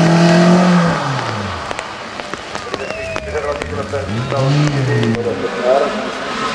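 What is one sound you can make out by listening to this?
A racing car engine revs hard and fades as the car speeds past.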